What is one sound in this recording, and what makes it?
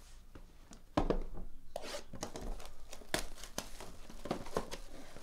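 Plastic wrap crinkles as hands handle it.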